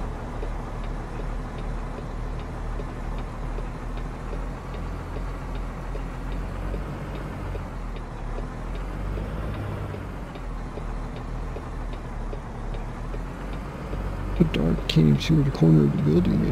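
A truck engine rumbles low and steady as the truck rolls slowly.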